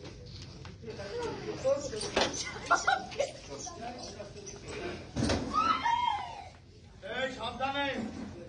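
A woman wails and cries out loudly nearby.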